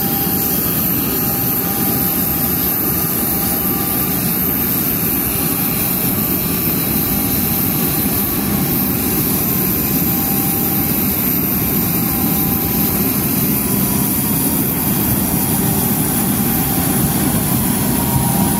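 A jet airliner's auxiliary power unit whines steadily.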